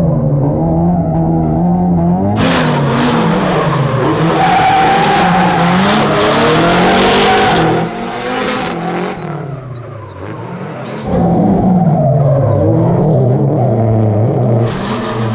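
A car engine roars and revs up and down loudly.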